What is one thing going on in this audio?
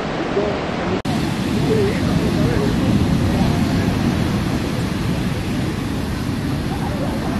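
Waves wash onto a beach with a steady rush.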